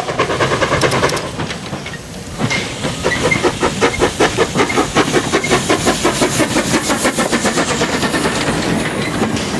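A steam locomotive chuffs rapidly and loudly as it passes close by.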